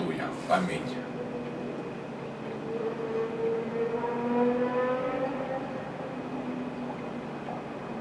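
A middle-aged man chants a long, slow sung line.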